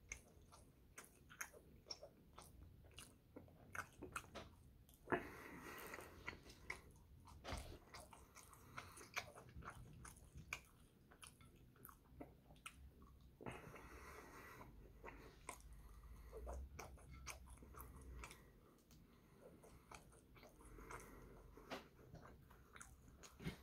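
A young man chews food noisily close by.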